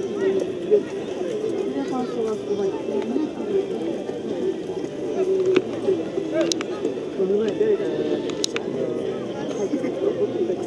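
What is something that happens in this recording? Young men call and chatter in the distance outdoors.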